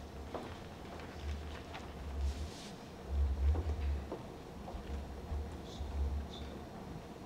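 Footsteps thud softly on a floor nearby.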